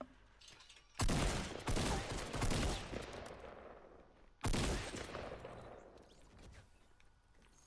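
Gunshots crack loudly and echo away.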